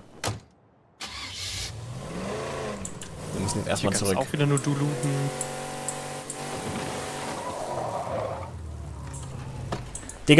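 A car engine runs and revs as a car drives along.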